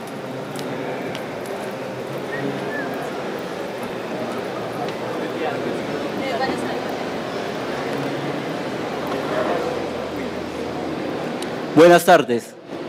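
An audience murmurs in the background.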